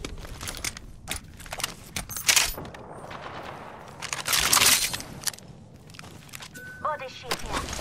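Metal crates clank open.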